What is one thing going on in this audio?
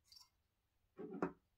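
A plastic stand bumps down on a table.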